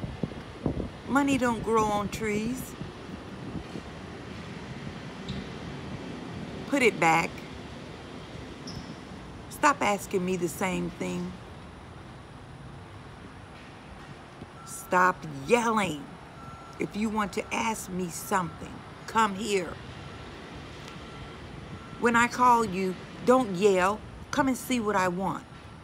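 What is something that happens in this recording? A middle-aged woman talks calmly and close by, in bursts with pauses.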